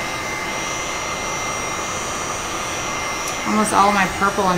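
A heat gun blows with a steady whirring hiss.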